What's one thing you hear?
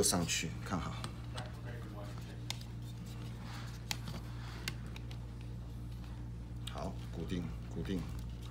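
Small plastic parts click and tap together close by.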